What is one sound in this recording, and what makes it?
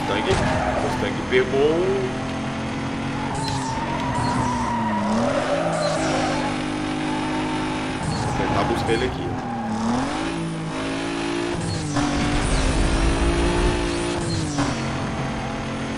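A race car engine roars and revs up and down as it shifts gears.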